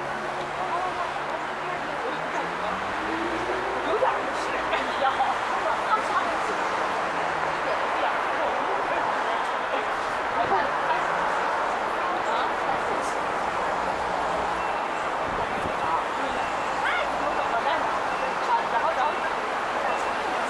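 A crowd of people chatters on a busy sidewalk.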